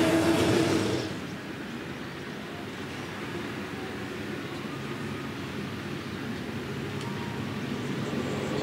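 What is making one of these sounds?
Distant racing car engines drone faintly.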